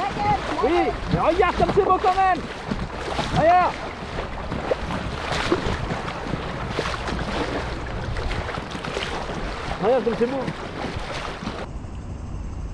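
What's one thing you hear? Choppy water splashes and slaps against the hull of a boat.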